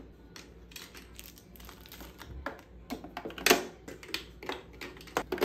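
Plastic makeup containers clink and rattle as a hand sorts through them.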